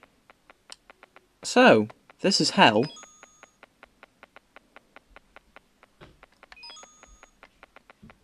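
A bright chime rings as a coin is picked up.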